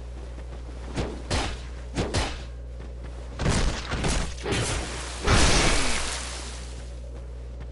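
Swords clash and swing in a game fight.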